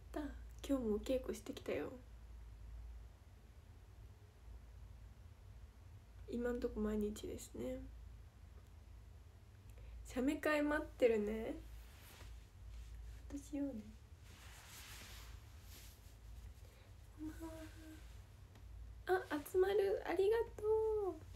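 A young woman talks softly and cheerfully, close to a microphone, in short bursts with pauses.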